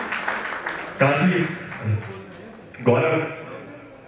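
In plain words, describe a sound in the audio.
A young man sings into a microphone, heard through loudspeakers.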